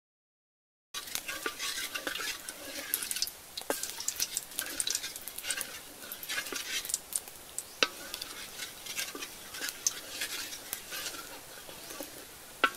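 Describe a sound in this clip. A wooden spatula scrapes against a metal pan.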